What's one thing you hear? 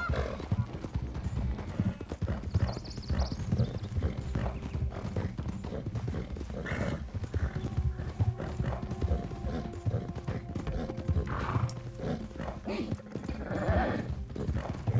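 Horse hooves thud rapidly in a steady gallop.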